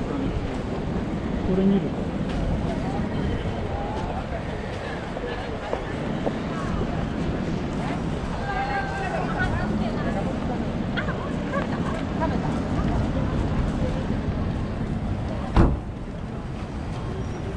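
A crowd of people murmurs and talks nearby outdoors.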